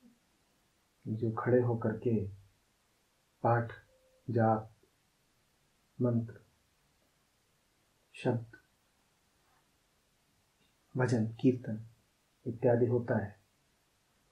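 A man speaks calmly and slowly into a close microphone, with long pauses.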